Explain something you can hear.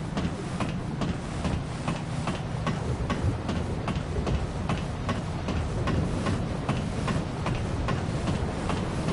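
Footsteps clank steadily on a metal ladder.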